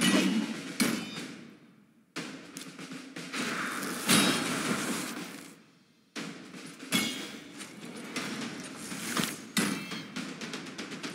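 Magic spells burst with loud whooshing blasts.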